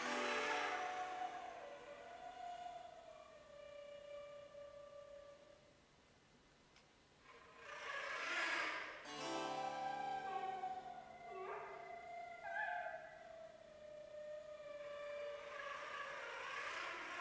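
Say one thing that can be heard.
Flutes play a slow melody in a large echoing hall.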